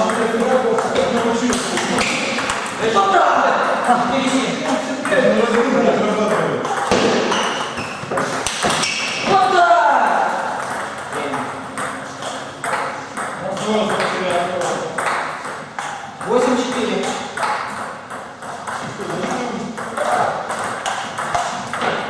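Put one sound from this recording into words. A ping-pong ball clicks back and forth on paddles and a table in an echoing hall.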